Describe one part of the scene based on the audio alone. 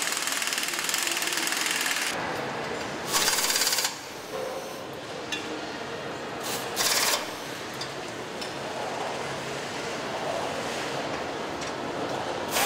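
Machinery hums steadily in a large echoing hall.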